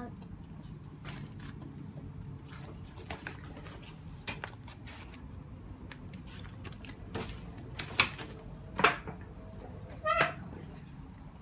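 Paper pages rustle and flap as they are turned.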